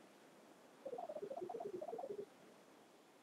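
A short cheerful game jingle of bright tones plays.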